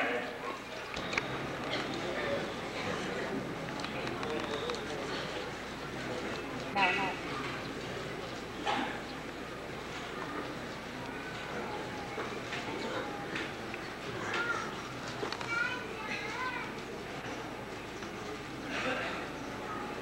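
Several men murmur and talk close by.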